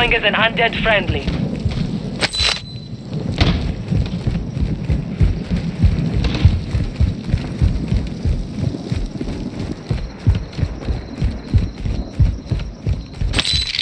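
Heavy footsteps run quickly over hard ground.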